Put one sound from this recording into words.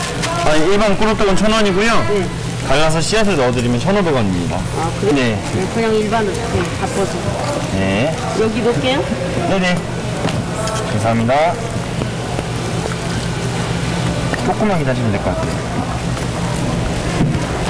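Hot oil sizzles and crackles steadily.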